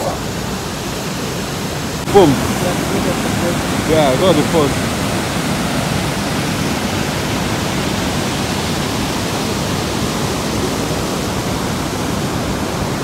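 Water rushes and roars steadily over a waterfall.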